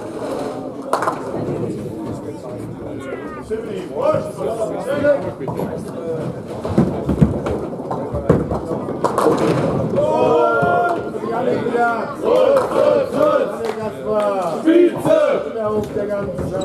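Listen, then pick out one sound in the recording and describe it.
Pins clatter as a ball knocks them down.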